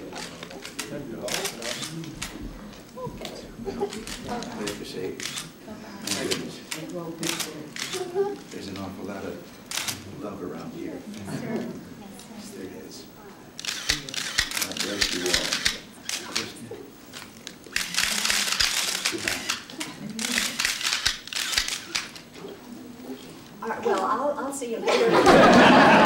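An elderly woman speaks softly, nearby.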